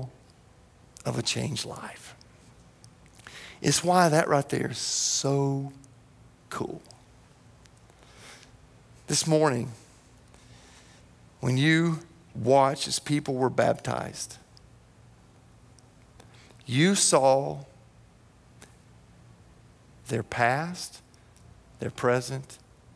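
A man speaks with animation through a microphone, pausing often.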